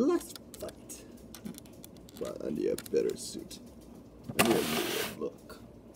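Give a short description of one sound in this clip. A plastic toy figure clicks as it is pulled off a plastic building plate.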